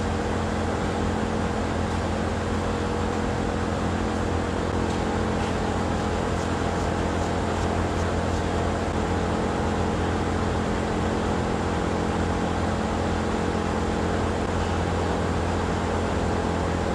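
Milking machines pump and hum steadily in a room that echoes.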